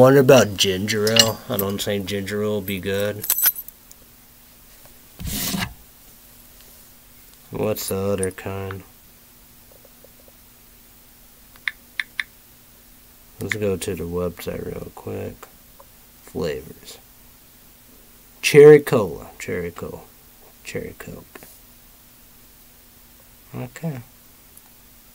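A young man speaks close to a microphone in short bursts, with pauses between.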